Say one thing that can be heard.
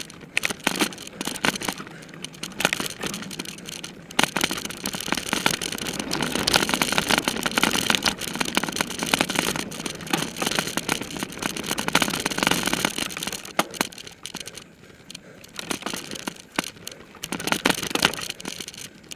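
A bicycle chain and frame rattle over bumps.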